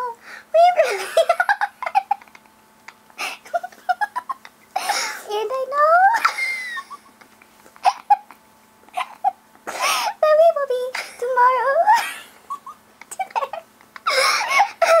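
A second young woman laughs and talks close to a microphone.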